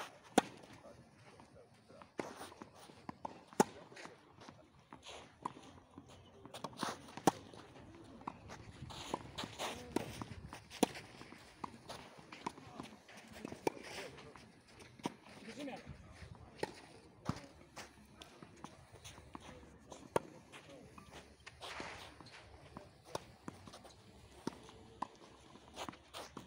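Shoes scuff and slide on a clay court.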